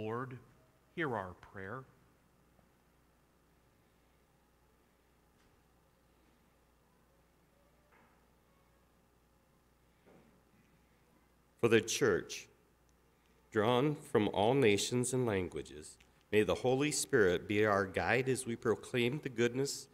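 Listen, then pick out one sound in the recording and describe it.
A man speaks calmly through a microphone in a large, echoing room.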